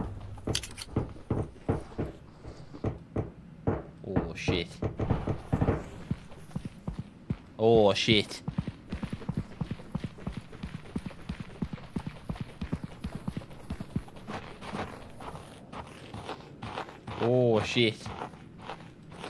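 A young man talks into a close microphone, now and then with animation.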